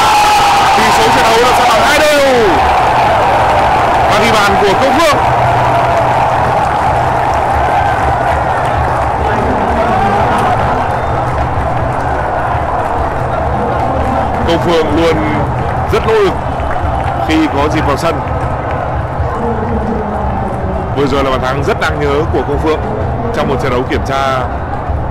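A large stadium crowd roars and cheers loudly.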